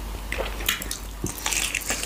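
A man bites into food close to a microphone.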